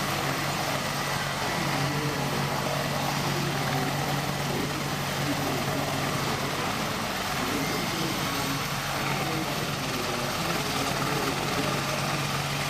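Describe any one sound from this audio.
A helicopter hovers close by, its rotor thudding and its engine whining loudly and steadily.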